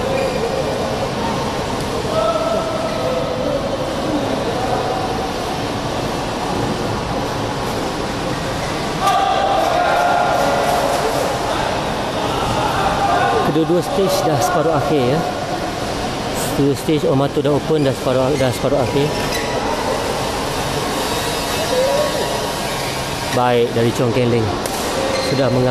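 Badminton rackets hit a shuttlecock again and again in a large echoing hall.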